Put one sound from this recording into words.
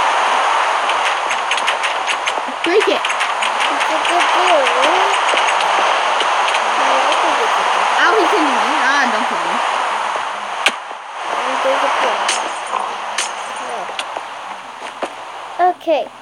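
A pickaxe taps rapidly at stone blocks.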